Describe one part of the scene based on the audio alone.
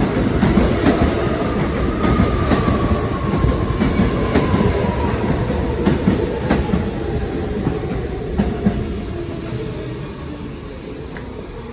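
Train brakes squeal with a falling whine.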